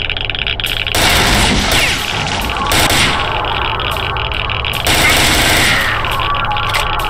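A rifle fires in loud, rapid bursts that echo.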